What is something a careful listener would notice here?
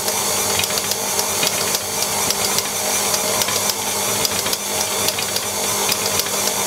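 A stand mixer whirs steadily as its whisk beats batter.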